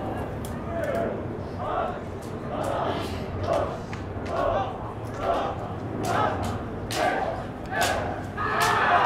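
A crowd chants in rhythm in the distance.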